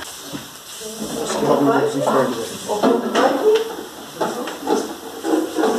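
Young men talk casually nearby.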